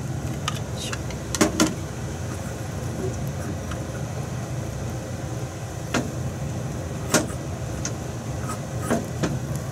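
Egg sizzles in a hot pan.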